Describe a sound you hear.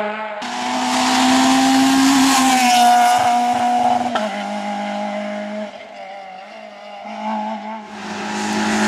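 A rally car races past at full throttle on tarmac and speeds away.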